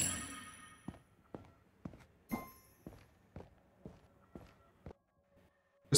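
Footsteps tap quickly as a game character runs.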